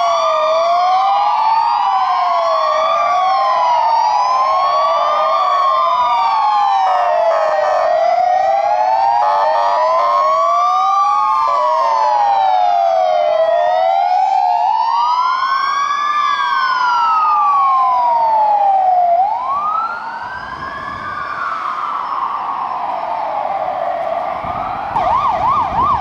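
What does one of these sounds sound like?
Several emergency sirens wail loudly, rising and falling.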